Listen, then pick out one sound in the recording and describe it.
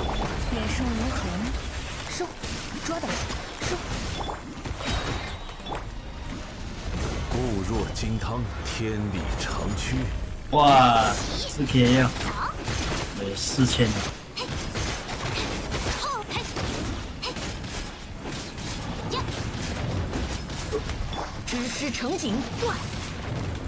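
Game attacks crash and explode in rapid bursts.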